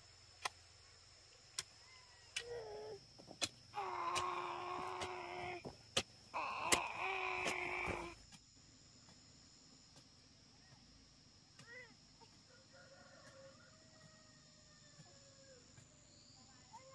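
A hoe chops into dry soil with dull thuds.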